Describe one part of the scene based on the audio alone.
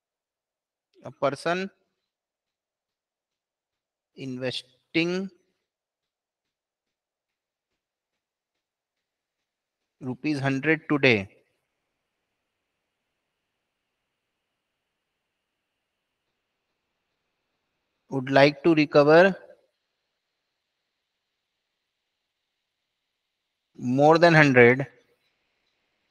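A young man speaks calmly into a close microphone, in short phrases with long pauses.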